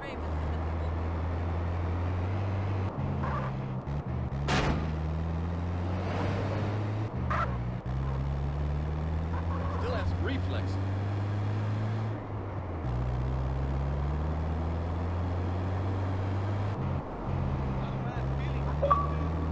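A truck engine hums steadily and shifts through its gears as it drives along.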